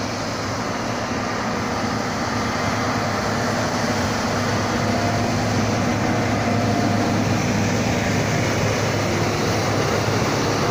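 A heavy diesel engine rumbles steadily close by, growing louder.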